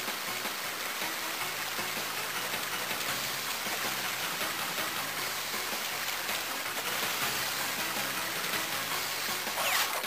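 Upbeat electronic game music plays with a steady beat.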